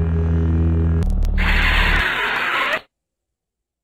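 A lightsaber powers down with a harsh, crackling whoosh.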